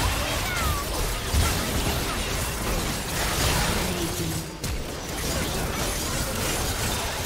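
Magic spell effects burst and crackle in a busy video game battle.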